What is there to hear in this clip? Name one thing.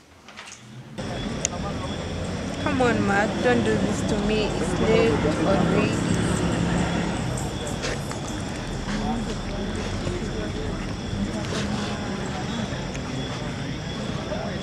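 A young woman speaks outdoors.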